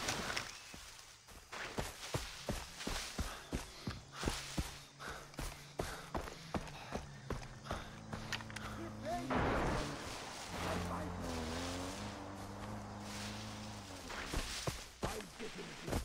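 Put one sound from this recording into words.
Leaves brush and swish against the body.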